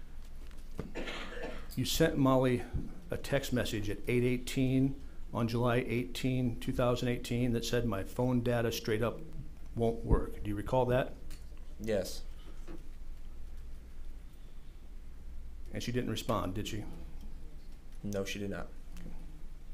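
A middle-aged man speaks calmly into a microphone, pausing now and then.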